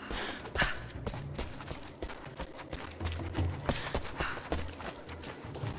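Footsteps crunch on rocky ground at a steady pace.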